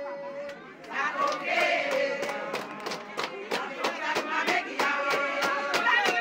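Hands clap in a quick, steady rhythm.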